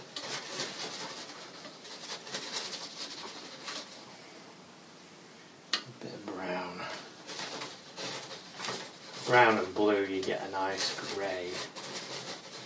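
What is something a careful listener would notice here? A brush scratches and scrubs on canvas.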